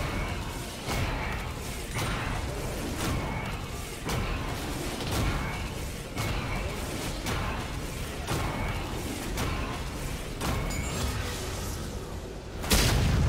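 Heavy blows strike a monster in a steady, repeating rhythm.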